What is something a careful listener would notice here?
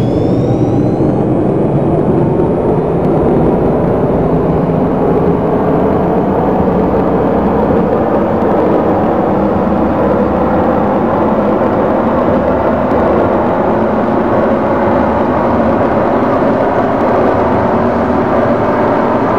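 A train's motor hums and rises in pitch as it speeds up through a tunnel.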